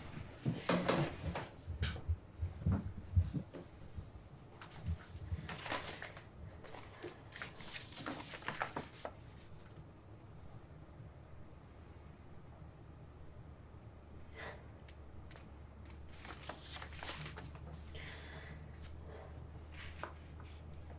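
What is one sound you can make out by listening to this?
Paper rustles as sheets are shuffled and handled close by.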